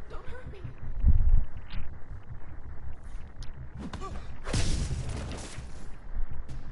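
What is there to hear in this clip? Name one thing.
Heavy punches thud during a fight.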